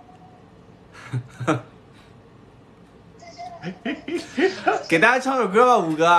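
Two young men laugh together.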